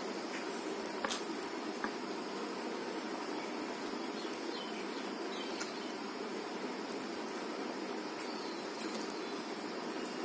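A woman chews food wetly and loudly close by.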